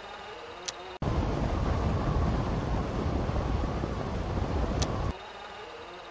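Wind rushes loudly past a gliding hang glider.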